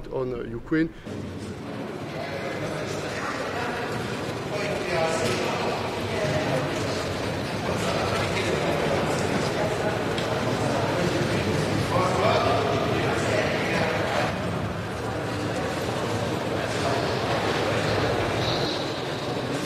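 A crowd of people murmurs and chatters in a busy hall.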